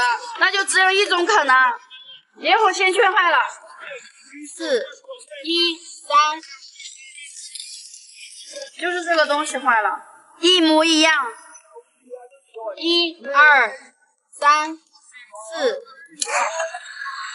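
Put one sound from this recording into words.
A young woman talks calmly close to the microphone.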